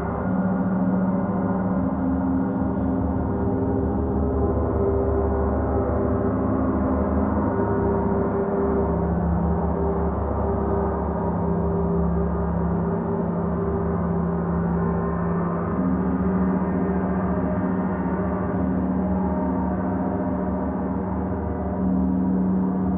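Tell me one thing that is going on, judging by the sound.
A man strikes a gong with a soft mallet.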